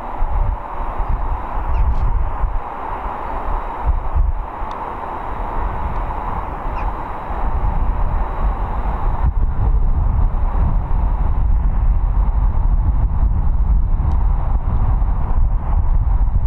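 Jet engines hum steadily in the distance.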